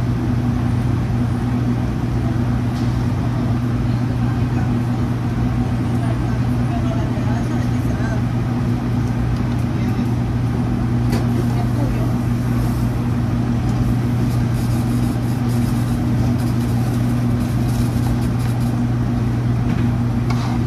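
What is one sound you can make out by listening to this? A kitchen exhaust fan hums loudly and steadily.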